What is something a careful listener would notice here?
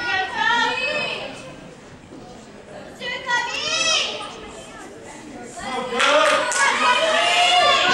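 Young girls shout and cheer excitedly in a large echoing hall.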